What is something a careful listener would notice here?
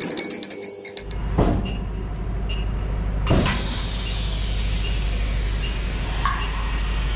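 A heavy machine hums and rumbles steadily.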